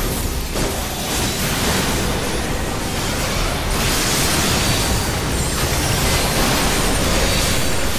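Magic spells burst and crackle in a video game battle.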